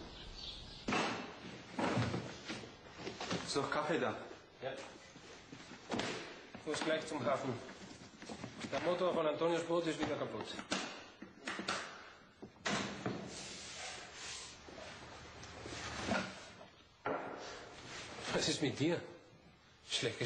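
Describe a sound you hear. A middle-aged man talks calmly nearby.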